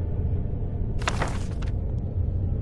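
A book snaps shut.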